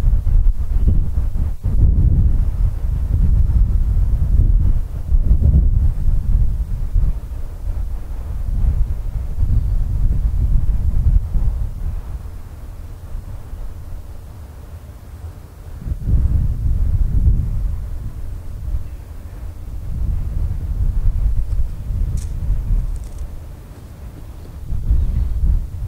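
A diesel-electric locomotive rumbles as it approaches, hauling a loaded ballast train.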